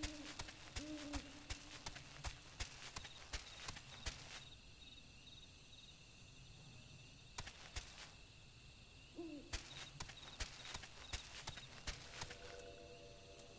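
Heavy bird footsteps patter quickly along the ground.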